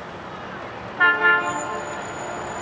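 A train horn blasts briefly.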